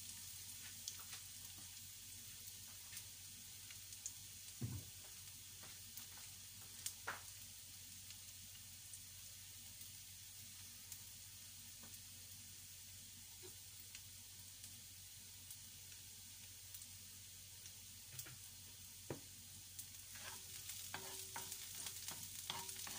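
Food sizzles and crackles in a hot frying pan.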